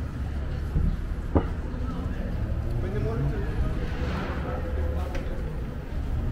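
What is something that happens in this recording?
Footsteps tap on a pavement.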